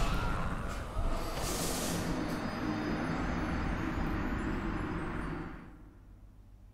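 A rushing whoosh swells and fades.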